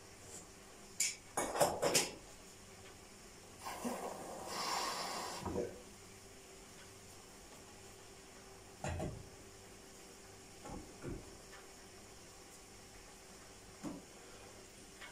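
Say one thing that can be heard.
Dishes clink and clatter.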